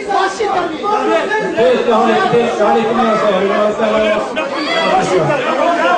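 A man speaks into a microphone through a loudspeaker.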